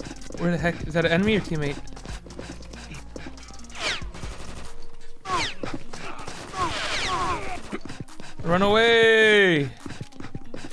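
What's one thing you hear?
A young man talks loudly and with animation close to a microphone.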